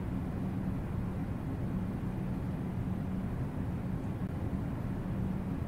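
Water rumbles and bubbles around a swimmer underwater.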